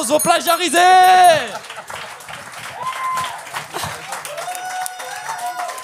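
A crowd laughs and cheers.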